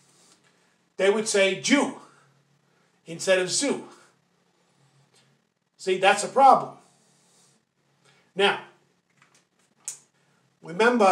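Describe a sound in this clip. An older man speaks calmly and slowly close to a microphone, in short phrases with pauses.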